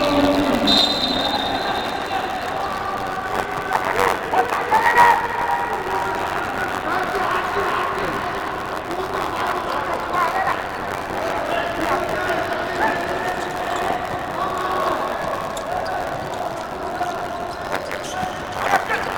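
Sneakers squeak on a hard indoor court.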